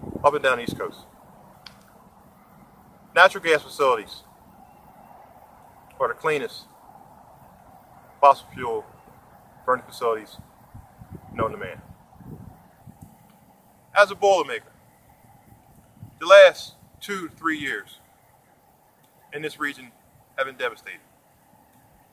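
A middle-aged man speaks calmly nearby outdoors, in short phrases with pauses.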